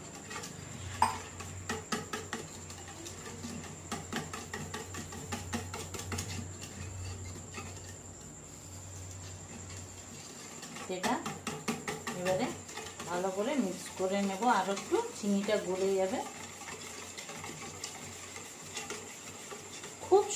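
A hand squelches and stirs through a thick wet mixture.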